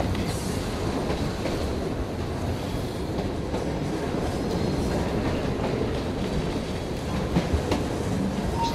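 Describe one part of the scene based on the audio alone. Soft footsteps creak on wooden floorboards.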